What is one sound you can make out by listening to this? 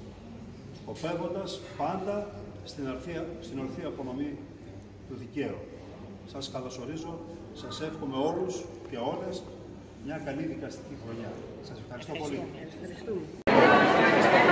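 An elderly man speaks calmly, a little way off.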